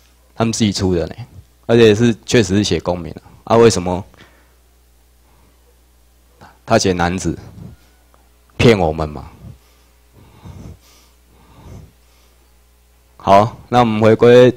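A man lectures through a microphone in a room, speaking in bursts with pauses.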